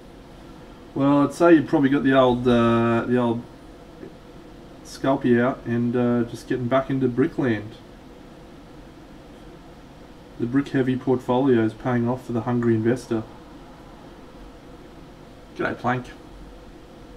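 A man talks calmly into a close microphone, in short bursts.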